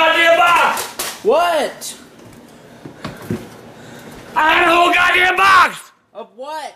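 An elderly man shouts angrily close by.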